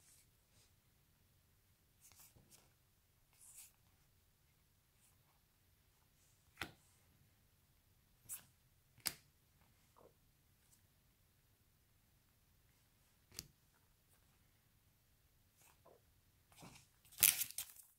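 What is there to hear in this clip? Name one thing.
Trading cards softly slide and tap against each other.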